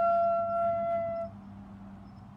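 A flute holds a long, steady note and stops.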